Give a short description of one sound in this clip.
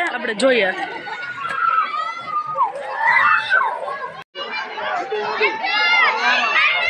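Children shout and squeal nearby while playing outdoors.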